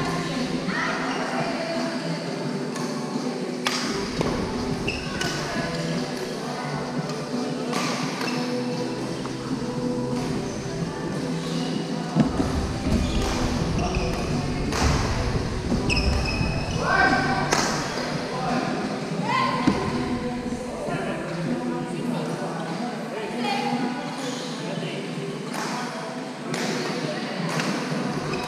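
Young women call out and talk to each other across the court.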